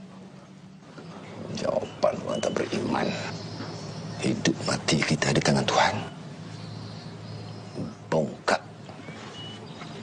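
An older man speaks with animation.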